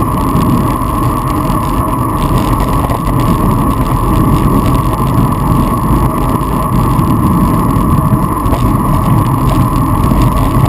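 Wind roars loudly across a microphone.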